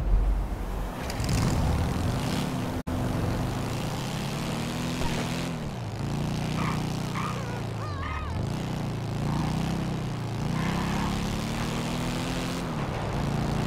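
A motorcycle engine revs up and down as the bike rides along.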